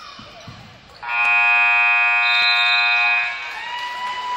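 A loud buzzer blares steadily.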